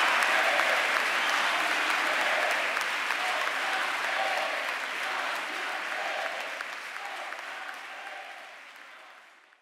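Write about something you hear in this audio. A large crowd applauds and cheers, then slowly fades away.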